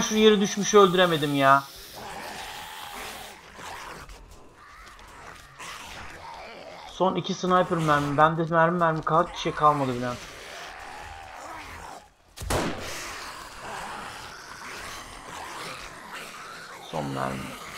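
A man talks animatedly into a microphone, close by.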